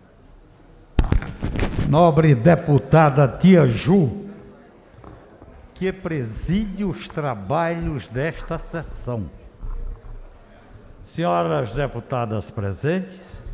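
An elderly man speaks forcefully into a microphone in an echoing hall.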